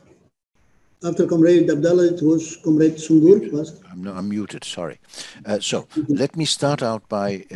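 An older man speaks calmly and steadily over an online call.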